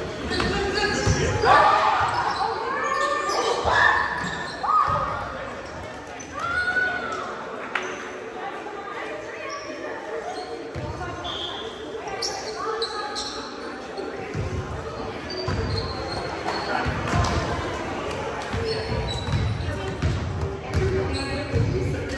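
Young men and women call out to each other in a large echoing gym.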